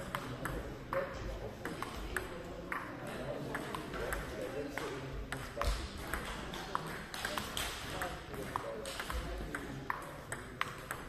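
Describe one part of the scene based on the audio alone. A table tennis ball clicks back and forth between paddles and the table in a rapid rally, echoing in a large hall.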